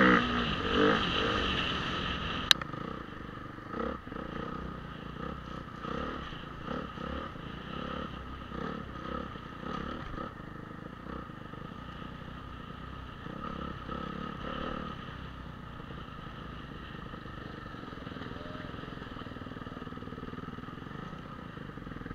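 Bicycle tyres rumble and rattle over a bumpy dirt track.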